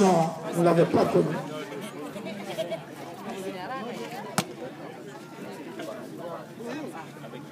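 Several men talk and chatter nearby outdoors.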